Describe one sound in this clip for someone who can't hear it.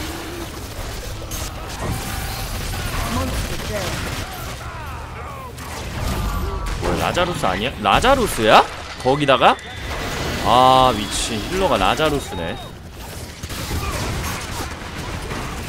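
Weapons fire and blast in rapid bursts.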